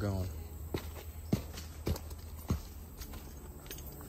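Footsteps crunch on dry leaves and stone steps.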